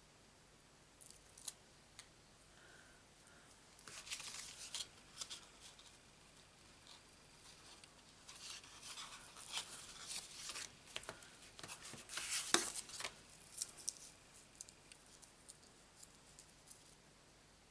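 Paper cards rustle and slide against each other as hands handle them.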